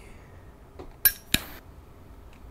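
A lighter clicks and sparks alight.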